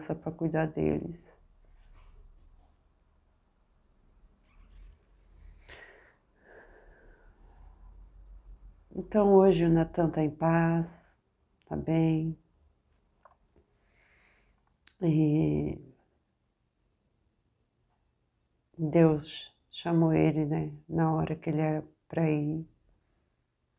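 A middle-aged woman speaks calmly and close to a microphone, with pauses.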